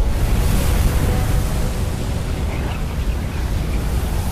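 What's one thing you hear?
A magic spell crackles and hisses.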